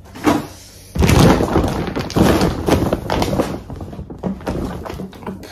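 A paper sheet crinkles and rustles up close.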